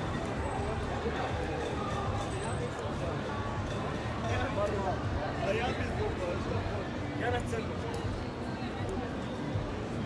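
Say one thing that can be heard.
A crowd of people chatters outdoors in a busy street.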